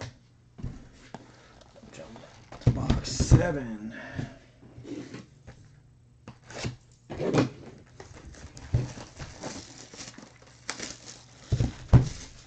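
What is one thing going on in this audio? Cardboard boxes knock and thump on a table.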